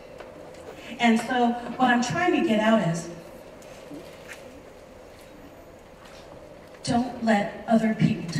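A woman speaks with animation into a microphone over a loudspeaker in a large room.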